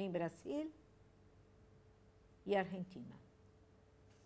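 A woman speaks briefly and calmly into a microphone.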